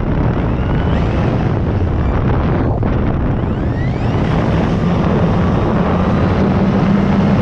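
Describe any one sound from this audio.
A small aircraft engine drones loudly and steadily.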